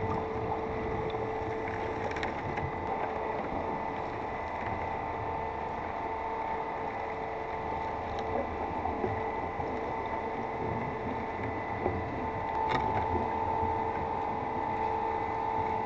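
Scuba bubbles gurgle and rumble underwater.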